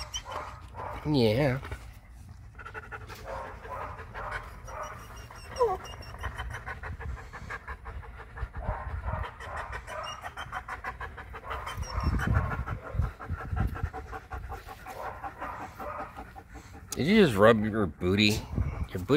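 A dog howls in short, wavering bursts.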